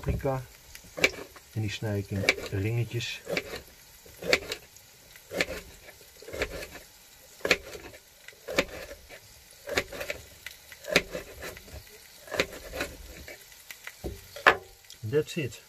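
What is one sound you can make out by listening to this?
A knife chops on a cutting board with sharp taps.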